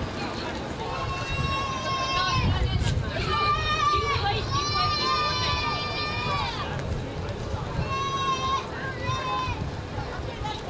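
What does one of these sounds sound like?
An ambulance sounds a loud horn in several long blasts.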